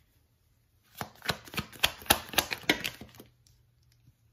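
Playing cards are shuffled by hand with quick rustling flicks.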